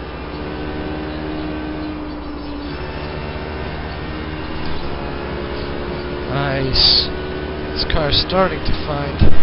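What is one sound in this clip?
A racing car engine drones steadily through speakers.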